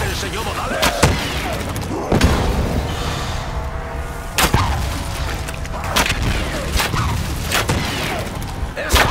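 A weapon fires in bursts of sharp blasts.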